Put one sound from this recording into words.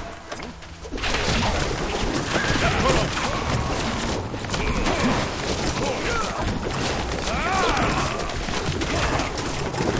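Swords clash and clang rapidly in a battle.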